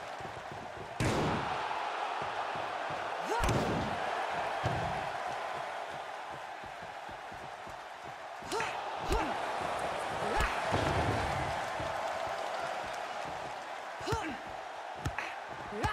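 Heavy bodies thud onto a ring mat.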